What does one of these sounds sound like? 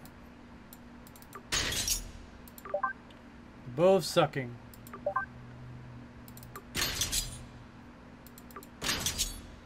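Short electronic menu blips and chimes sound as selections change.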